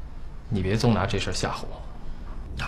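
A young man speaks tensely.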